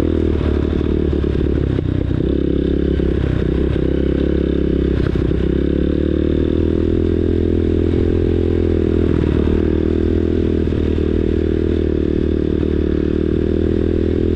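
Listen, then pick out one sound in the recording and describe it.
A dirt bike engine drones steadily up close.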